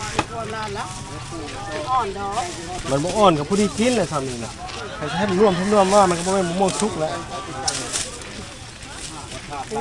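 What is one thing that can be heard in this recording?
A plastic bag rustles as a vendor bags produce.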